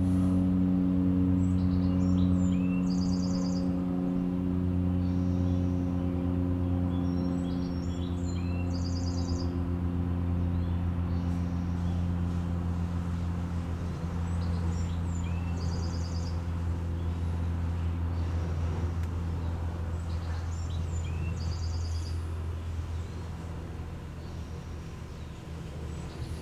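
A man hums a low, steady tone close by.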